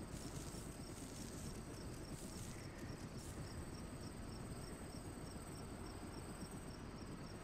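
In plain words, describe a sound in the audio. A helicopter engine runs with a steady low rumble nearby.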